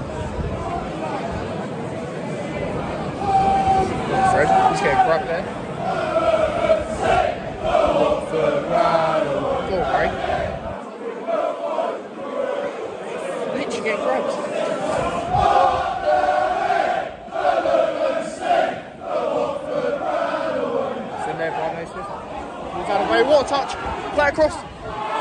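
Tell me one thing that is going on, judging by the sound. A crowd of fans chants and sings together.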